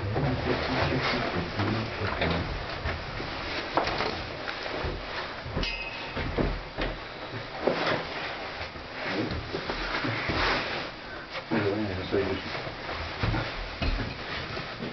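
A cable car cabin rumbles and rattles as it rolls slowly along its cable.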